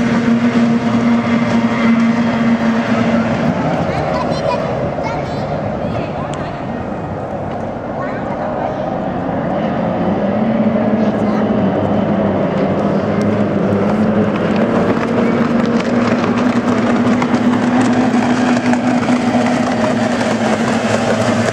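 Racing boat engines drone steadily across the water, growing louder as the boats come closer.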